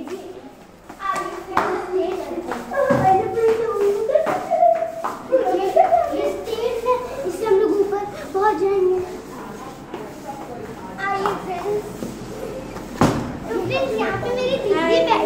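Young children talk and chatter excitedly nearby.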